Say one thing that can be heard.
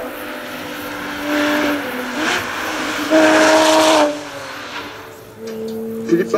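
A racing car engine roars and revs hard as the car speeds past.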